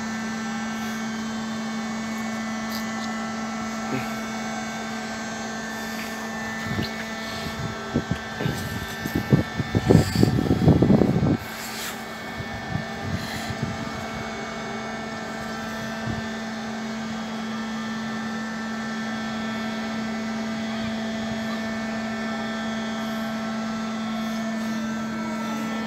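A machine hums steadily as a swing bridge slowly turns.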